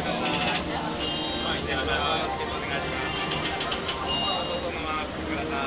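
Ticket gates click and beep.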